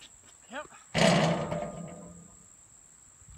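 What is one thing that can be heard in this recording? A basketball clangs loudly off a metal rim and rings.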